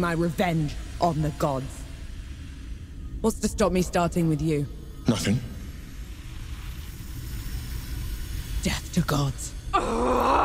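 A woman speaks with intensity, close by.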